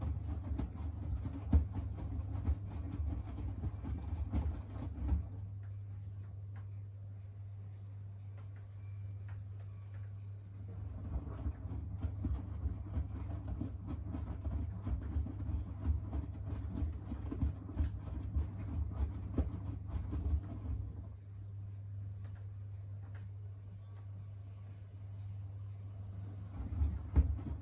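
Wet laundry tumbles and sloshes in a washing machine drum.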